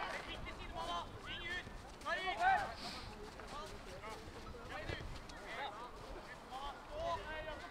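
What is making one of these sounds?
Players shout to each other across an outdoor football pitch.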